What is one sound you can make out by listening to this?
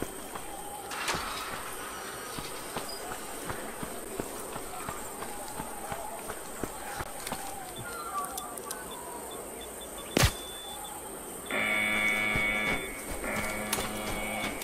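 Footsteps tap steadily on the ground.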